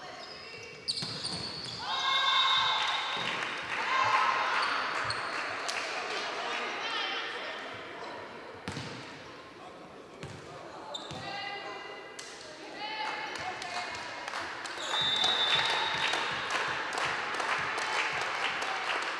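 Players shout and cheer loudly in an echoing hall.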